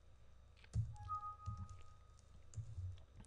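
A computer alert chime sounds once.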